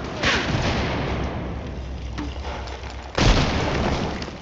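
Loud gunshots boom and ring out with a long echo.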